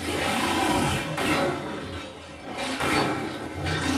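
A blast booms with a crackling burst of energy.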